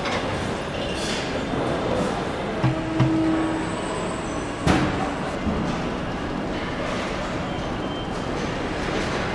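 Factory machinery hums steadily in a large echoing hall.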